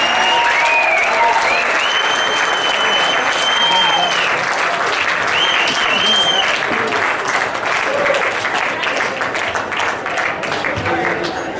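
A string band plays a lively tune through loudspeakers.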